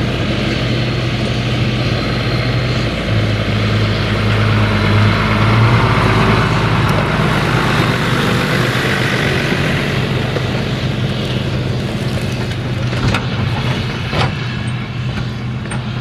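A tractor engine idles nearby with a steady low rumble.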